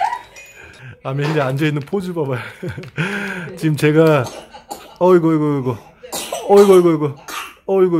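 A woman talks to a baby nearby in a lively, sing-song voice.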